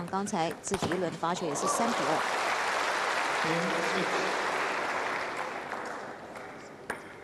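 A crowd applauds loudly in a large hall.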